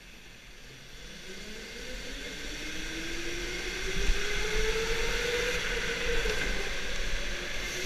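A go-kart engine whines and revs up as the kart speeds along.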